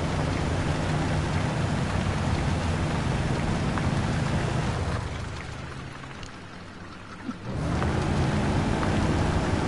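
Tyres churn through thick mud.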